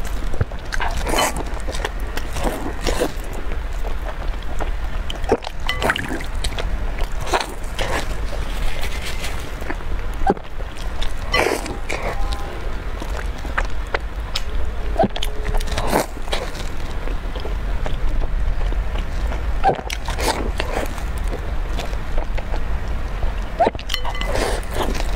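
A young woman bites into soft bread close to a microphone.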